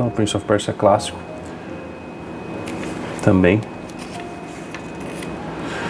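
Paper pages rustle as a page is turned.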